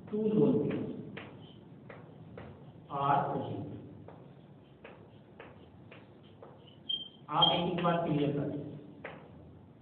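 A man speaks in short phrases, close by and in a room that echoes a little.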